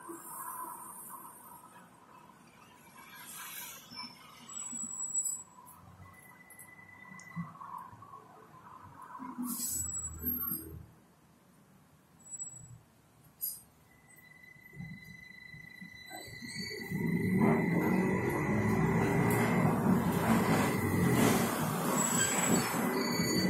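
A bus engine hums quietly, then roars louder as the bus picks up speed.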